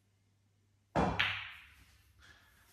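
Pool balls clack together sharply.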